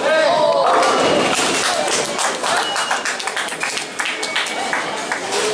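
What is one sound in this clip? Bowling pins crash and clatter loudly.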